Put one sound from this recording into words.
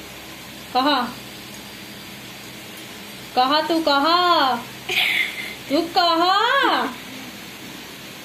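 A girl laughs close by.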